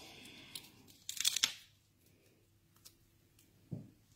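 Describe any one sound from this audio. Paper strips rustle as they are handled.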